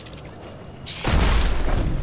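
A magic blast bursts loudly.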